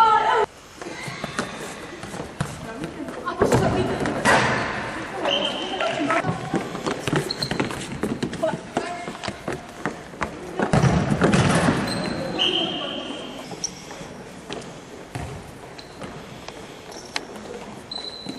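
A ball thuds as it is kicked across a wooden floor in a large echoing hall.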